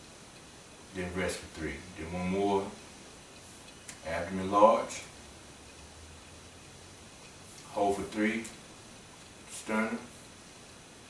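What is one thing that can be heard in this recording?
A man speaks calmly and slowly nearby, pausing between phrases.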